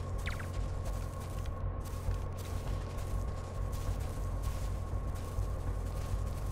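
Soft footsteps shuffle slowly on gravel.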